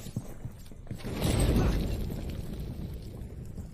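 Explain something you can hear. Flames burst and crackle.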